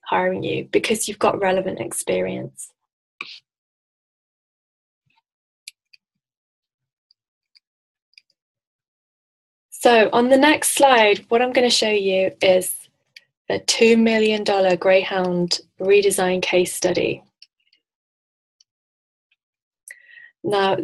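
A woman speaks calmly, heard through an online call microphone.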